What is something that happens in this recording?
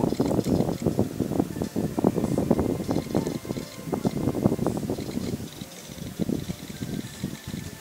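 Quick electronic blips chime over and over as a game snake eats.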